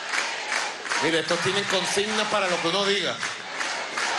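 A crowd cheers and chants loudly.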